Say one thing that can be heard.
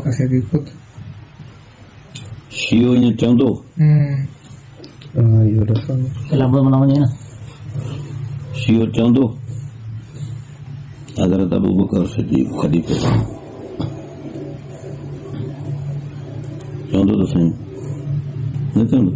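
An elderly man speaks with animation, heard through a microphone.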